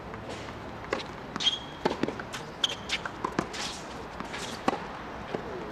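A tennis ball is struck by rackets and bounces on a hard court.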